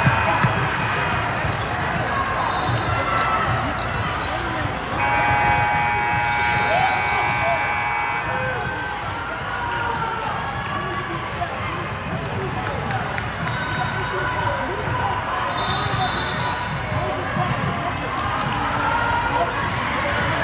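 Basketball shoes squeak sharply on the court.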